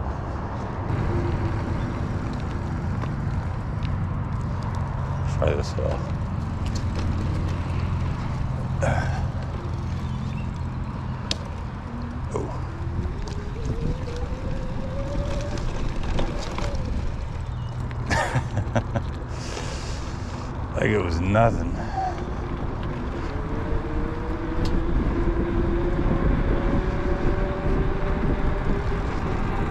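Bicycle tyres roll over pavement with a low rumble.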